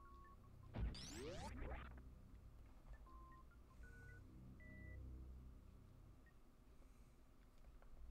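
Electronic game music beeps softly in short tones.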